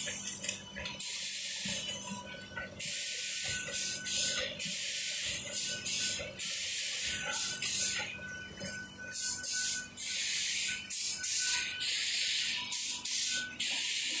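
A machine's moving parts thump and clank at intervals.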